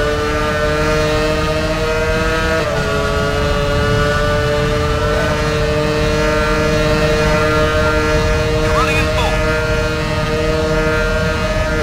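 A racing car engine whines at a steady high pitch at full speed.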